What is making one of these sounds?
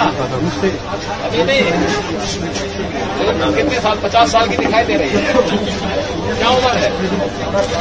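A man answers calmly.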